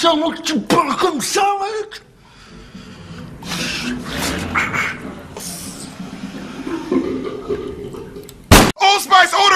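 A man growls and speaks menacingly up close.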